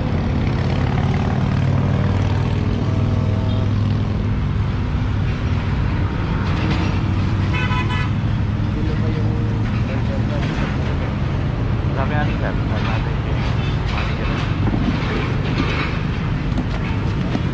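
Men talk nearby in calm, overlapping voices.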